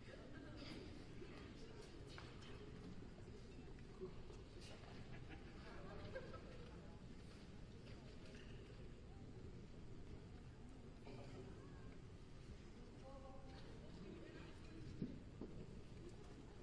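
A man speaks quietly, far off in a large echoing hall.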